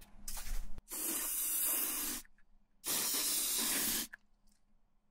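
An aerosol can hisses in short bursts.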